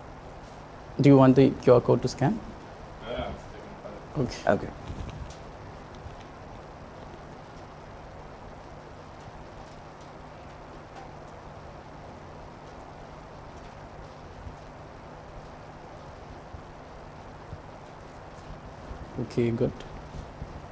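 A man speaks briefly into a microphone, with long pauses.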